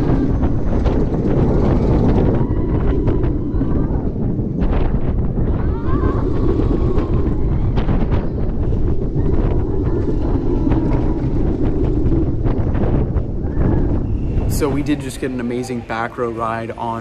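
A roller coaster rumbles and clatters loudly along its track.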